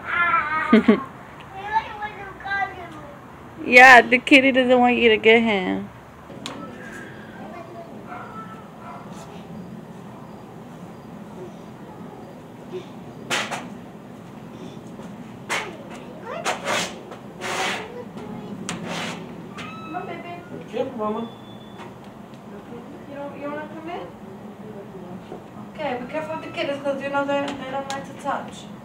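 A small child babbles and squeals close by.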